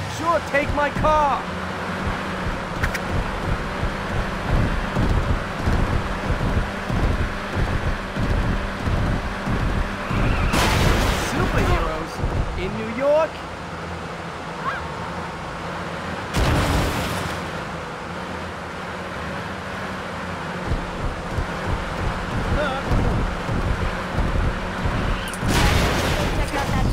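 A car engine hums steadily as a car drives.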